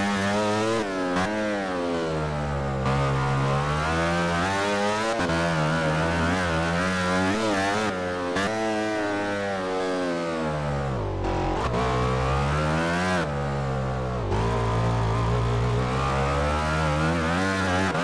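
A motorcycle engine screams at high revs, rising and falling as it shifts gears.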